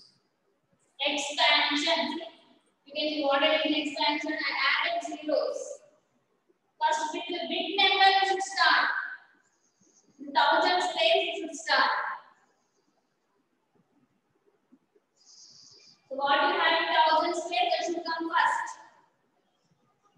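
A young woman speaks clearly and calmly, as if teaching, with pauses between phrases.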